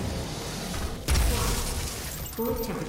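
An explosion bursts with a bright crackle.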